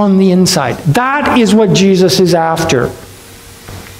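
A middle-aged man speaks with animation into a microphone in a large hall.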